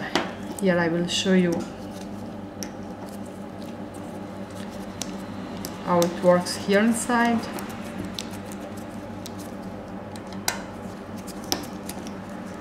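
A hex key turns a small metal screw with faint clicks.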